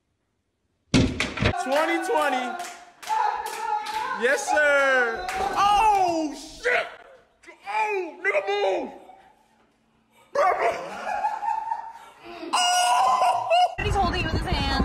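Young people cheer and shout excitedly nearby.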